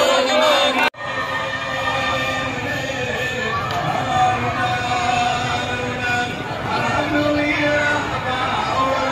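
A large crowd cheers and chants loudly outdoors.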